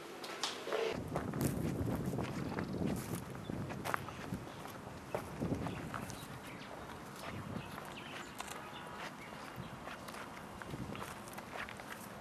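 Footsteps crunch on dry ground outdoors.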